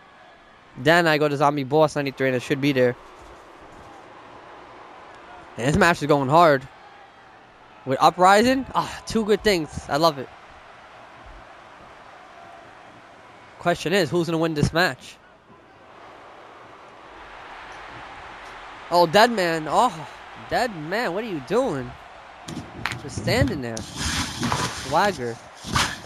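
A large crowd cheers steadily in a big echoing arena.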